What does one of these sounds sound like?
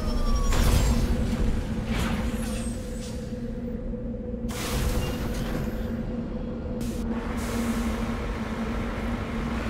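A heavy vehicle's engine hums steadily.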